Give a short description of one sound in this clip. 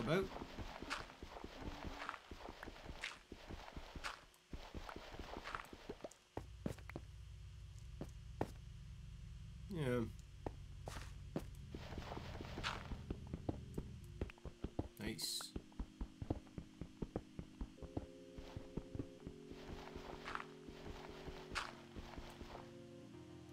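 Blocks crunch in quick, repeated knocks as they are dug.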